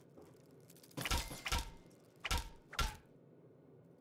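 A bat strikes something with several heavy thuds.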